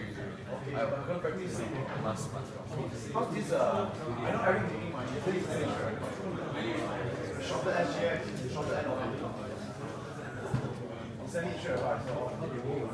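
Several men talk with one another nearby, in a lively murmur of overlapping voices.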